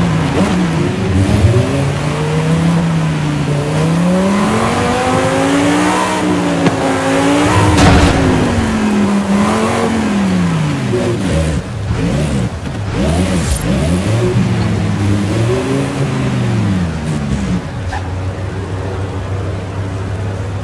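A sports car engine roars, revving up and down as it shifts gears, then settles to a low idle.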